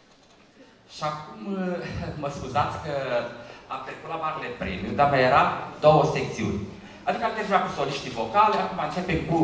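A middle-aged man speaks into a microphone over a loudspeaker in a large echoing hall.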